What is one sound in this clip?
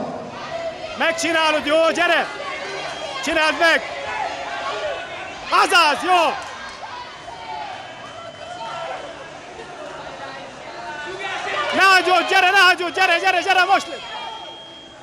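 Spectators shout encouragement loudly in a large echoing hall.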